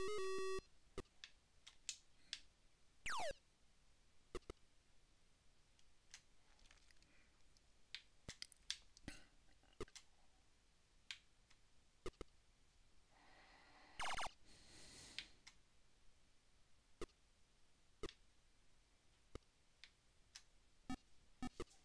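Short electronic blasts and clicks pop now and then.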